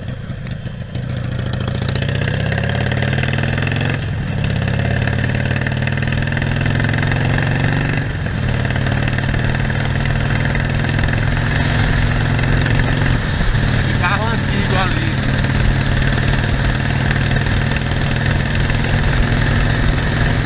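A Harley-Davidson Sportster V-twin motorcycle accelerates through the gears.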